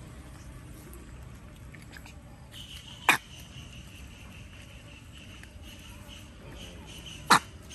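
Otters lap and splash water in a metal bowl.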